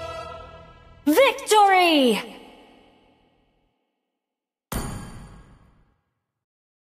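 A game plays a triumphant victory fanfare.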